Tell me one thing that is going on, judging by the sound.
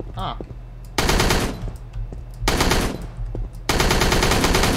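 A rifle fires in rapid bursts of automatic fire.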